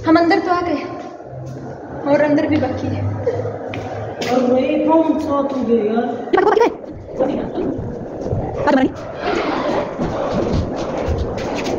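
Footsteps tap on a hard floor in an echoing corridor.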